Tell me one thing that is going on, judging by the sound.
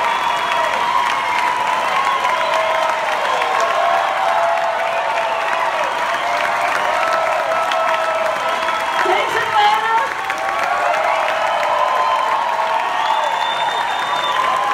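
A crowd cheers and whistles loudly in a large hall.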